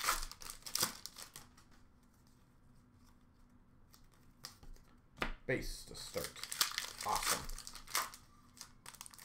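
Foil card packs crinkle and rustle as hands handle them.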